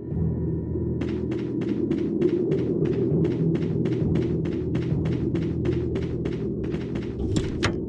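Quick footsteps run over dry ground.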